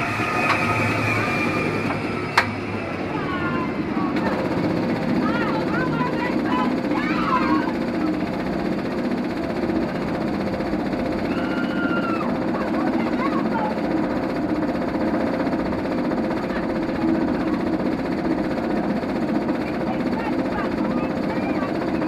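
A roller coaster train rumbles and clanks steadily as it climbs.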